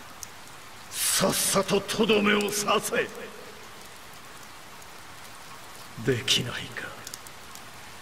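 A man speaks in a strained, pained voice.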